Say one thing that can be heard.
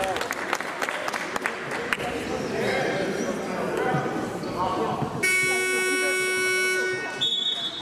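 Young boys shout and call out in a large echoing hall.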